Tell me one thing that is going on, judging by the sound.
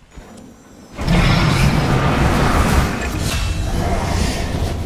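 Spells blast and crackle in a loud, chaotic fantasy battle.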